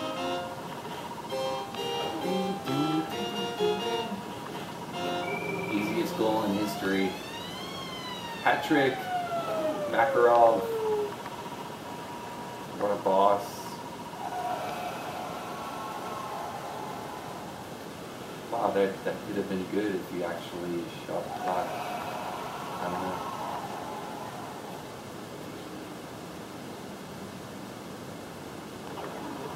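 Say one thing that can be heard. Electronic video game music plays through a television speaker.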